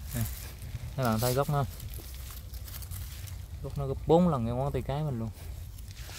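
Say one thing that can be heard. Dry leaves rustle as a hand brushes through them.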